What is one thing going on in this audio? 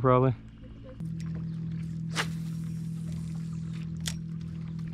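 A fishing reel whirs steadily as line is wound in.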